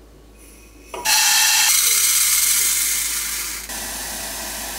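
Dry lentils pour and rattle into a metal pot.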